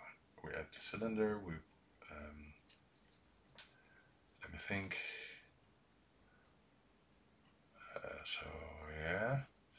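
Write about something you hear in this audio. A man speaks calmly and thoughtfully into a close microphone, with pauses.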